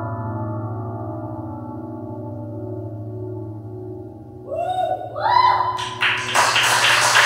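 A man sings a long held note into a microphone, then climbs higher in short rising notes.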